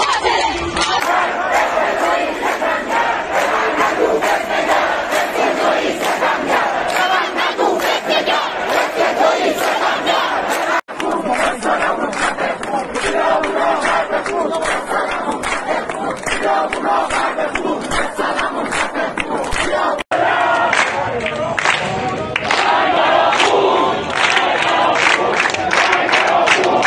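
A large crowd of young men and women chants loudly in unison outdoors.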